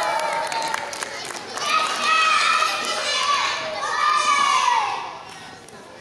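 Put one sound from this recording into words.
Young children chant and sing together in a large echoing hall.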